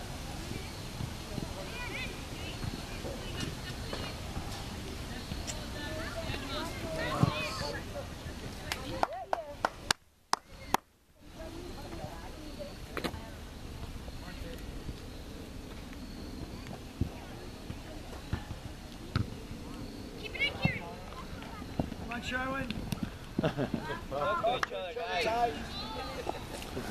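Young players shout and call out across a wide open field outdoors.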